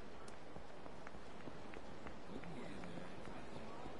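A busy street murmurs in the background.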